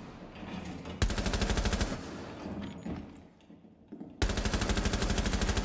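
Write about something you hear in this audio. A rifle fires rapid bursts of shots up close.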